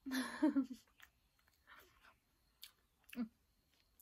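A young woman chews food noisily close by.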